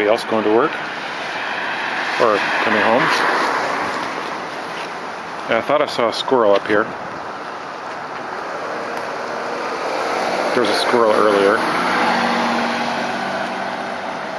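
A car drives past on a wet road, its tyres hissing.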